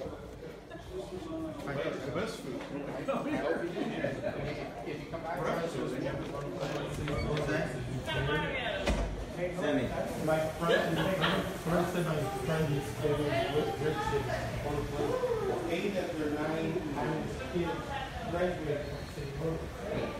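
Men and women chat in a murmur of voices nearby.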